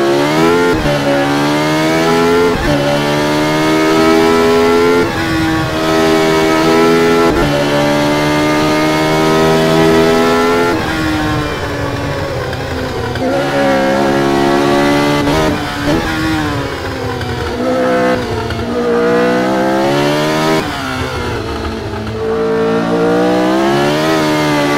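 A racing car engine screams loudly, rising in pitch through each gear and dropping sharply at every gear change.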